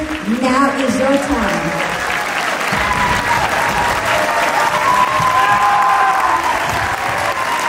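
A young woman speaks into a microphone, heard through loudspeakers in a large echoing hall.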